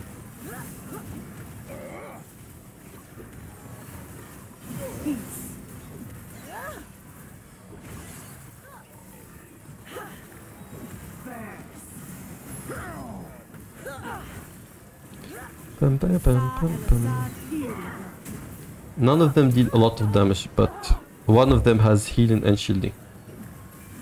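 Magic spells whoosh and crackle during a battle.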